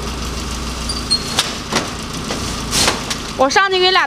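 Heavy sacks thump onto a truck bed.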